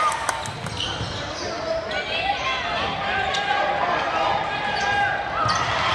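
A crowd murmurs and cheers in the stands.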